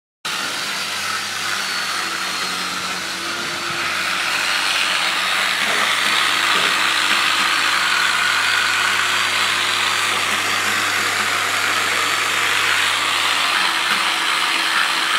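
An electric sander whirs steadily against metal.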